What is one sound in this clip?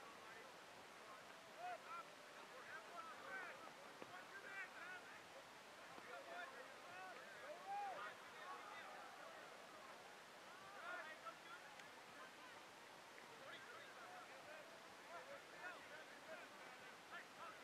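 Young men shout to each other in the distance across an open field.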